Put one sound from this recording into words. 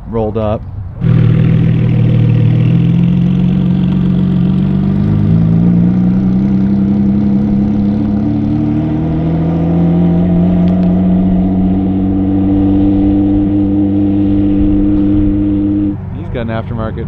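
A sports car engine roars loudly and climbs in pitch as the car accelerates away.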